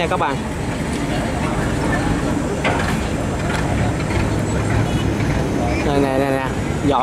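Boat engines rumble steadily on the water.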